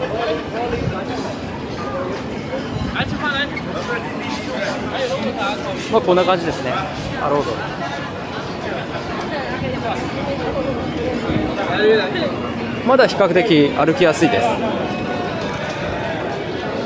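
A crowd chatters all around outdoors.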